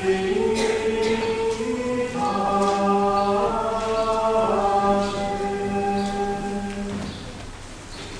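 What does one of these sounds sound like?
Several men sing a slow chant together in a large echoing hall.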